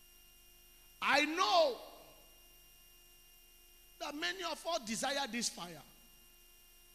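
A man preaches with animation into a microphone, heard through loudspeakers.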